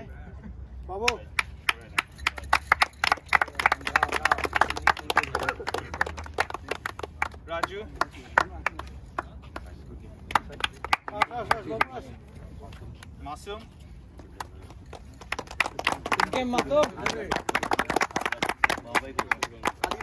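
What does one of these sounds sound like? A group of young men clap their hands.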